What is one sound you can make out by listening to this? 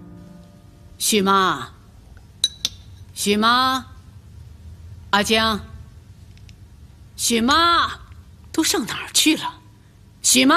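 An elderly woman calls out loudly, with a rising, drawn-out voice.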